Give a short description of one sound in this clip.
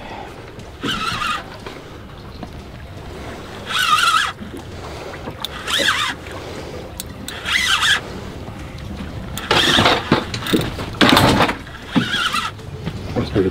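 A fishing reel's drag buzzes in short bursts as line is pulled out.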